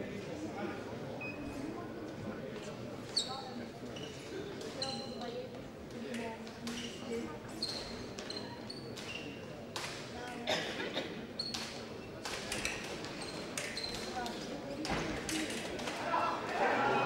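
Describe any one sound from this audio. Fencers' shoes squeak sharply on a hard floor.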